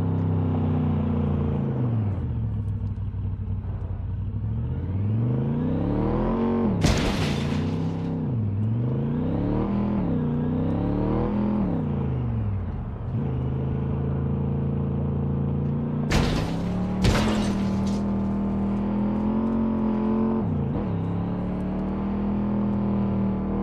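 A car engine hums and revs up and down as the car drives.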